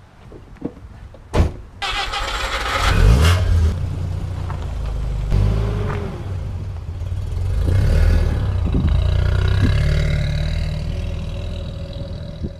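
A car engine hums as a car drives slowly.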